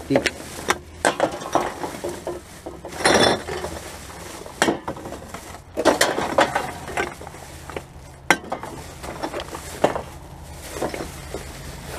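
Empty cans and bottles clatter and clink together.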